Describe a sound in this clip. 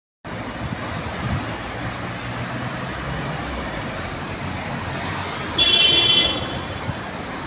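Car tyres hiss on a wet road nearby.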